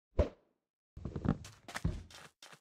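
Gritty blocks crunch as they are dug out and placed.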